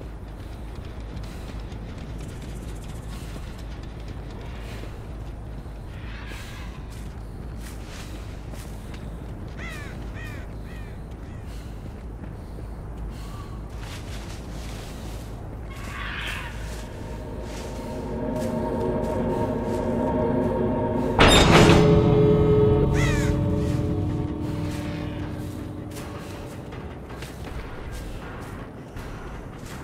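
A low, eerie drone hums throughout.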